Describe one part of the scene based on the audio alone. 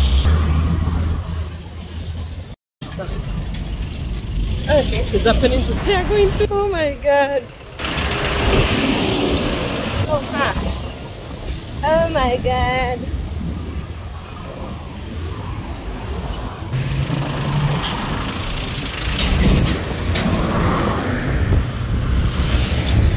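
Traffic rumbles past on a busy road.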